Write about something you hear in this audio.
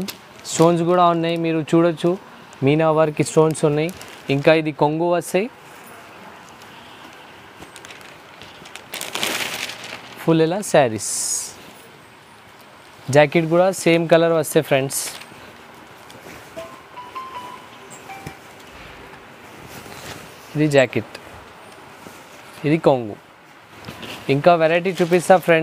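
Silk cloth rustles as hands unfold and lay it out.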